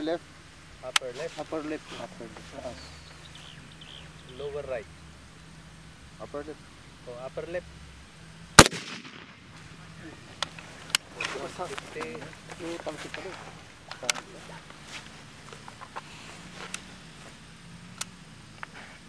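A rifle fires single sharp shots outdoors.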